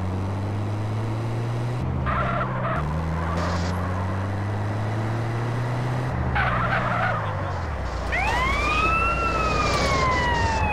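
A vehicle engine drones and revs steadily.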